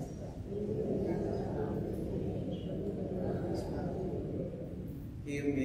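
A man speaks steadily into a microphone, heard through loudspeakers in a large echoing hall.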